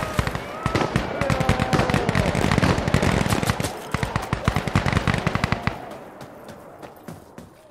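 Footsteps crunch quickly over dirt and gravel.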